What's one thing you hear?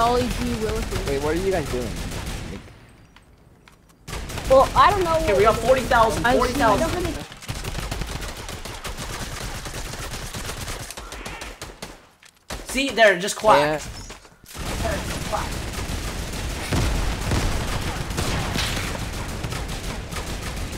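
Gunfire rattles rapidly in a game.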